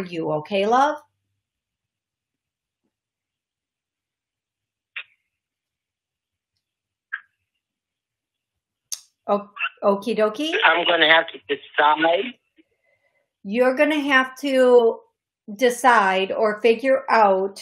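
A middle-aged woman speaks calmly and close up, with pauses.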